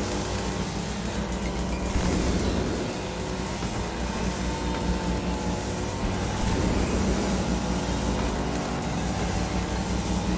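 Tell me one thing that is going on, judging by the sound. Electric sparks crackle and fizz.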